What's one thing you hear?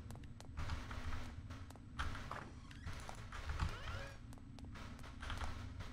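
Footsteps tread on a wooden floor.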